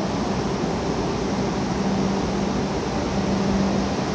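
A train slowly pulls forward.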